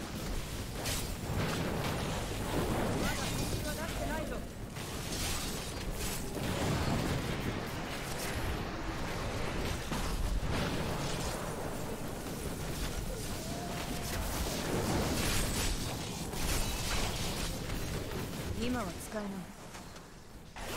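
Magic blasts and explosions crackle and boom in quick succession.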